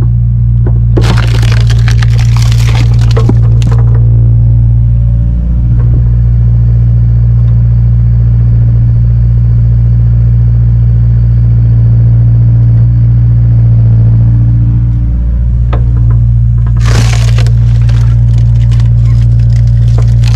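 Split logs crack and clatter as they tumble down.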